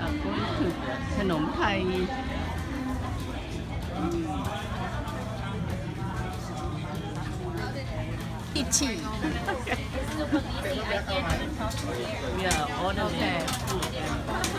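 A crowd chatters all around.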